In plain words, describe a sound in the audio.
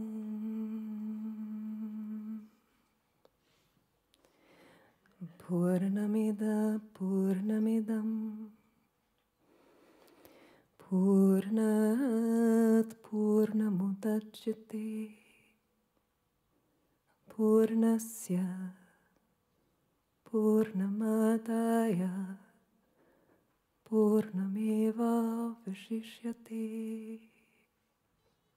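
A woman sings slowly into a microphone in long held notes, with pauses between phrases.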